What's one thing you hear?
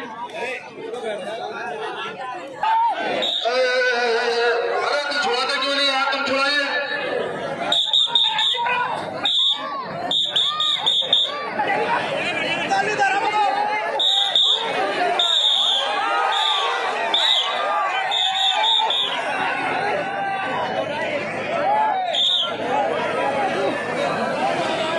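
A large outdoor crowd chatters and cheers.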